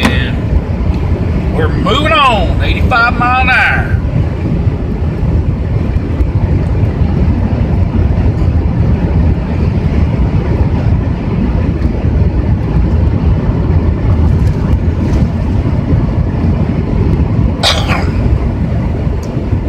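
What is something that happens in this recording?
Tyres roll steadily on a highway.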